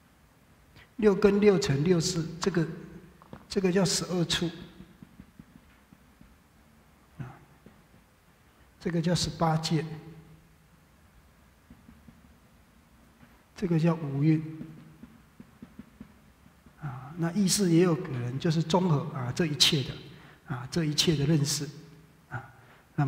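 A man speaks calmly in short bursts through a headset microphone.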